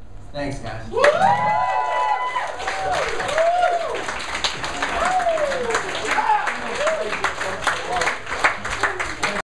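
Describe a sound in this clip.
A crowd claps their hands.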